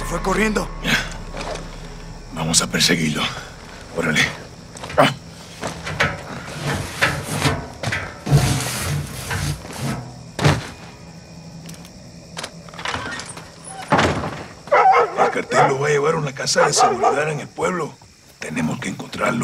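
A man speaks urgently and close by.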